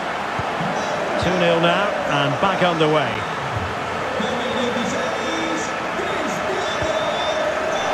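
A stadium crowd murmurs and roars steadily.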